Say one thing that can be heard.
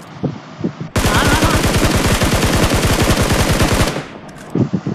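A rifle fires in a rapid burst of gunshots.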